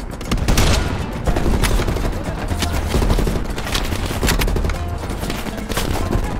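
A rifle is reloaded with metallic clicks and clacks.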